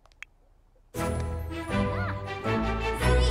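A cheerful fanfare jingle plays loudly.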